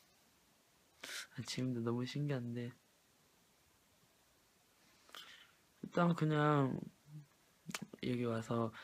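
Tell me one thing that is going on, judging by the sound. A young man speaks softly and hesitantly, close to the microphone.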